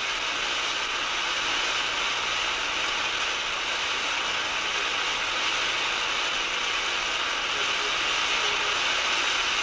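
Television static hisses steadily.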